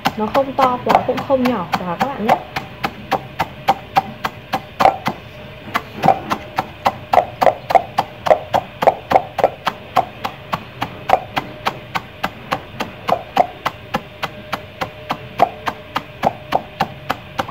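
A pestle pounds rapidly against nuts in a metal mortar, with sharp knocks.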